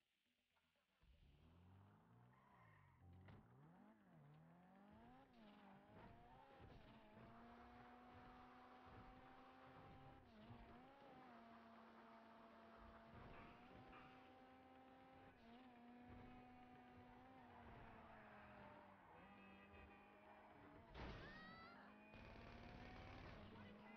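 A car engine roars, rising and falling in pitch as the car speeds along.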